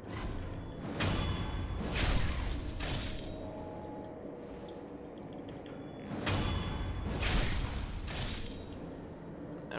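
A sword swings and strikes with loud whooshing bursts.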